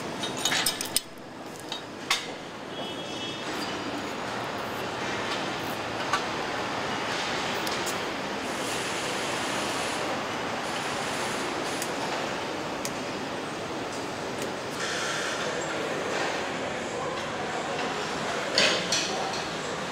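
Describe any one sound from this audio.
Machinery hums steadily in a large echoing hall.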